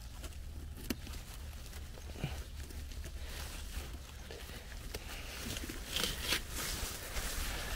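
Leaves rustle as they are brushed aside.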